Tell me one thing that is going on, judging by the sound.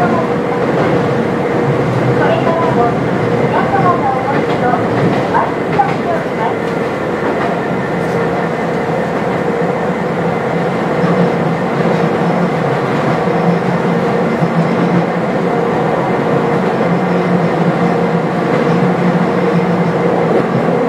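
A train's motor hums with a steady tone.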